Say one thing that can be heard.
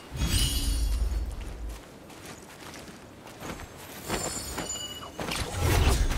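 Footsteps tread on grass and dirt.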